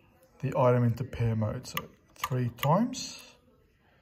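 A finger presses a wall switch with a soft click.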